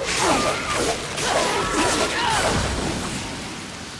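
Heavy blows strike creatures with crunching impacts.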